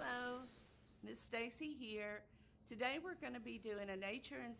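A woman speaks calmly and warmly, close by.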